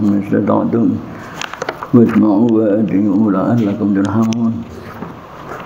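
An elderly man reads aloud in a chanting voice through a headset microphone.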